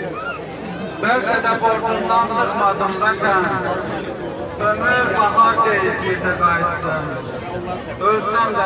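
A man speaks forcefully through a loudspeaker.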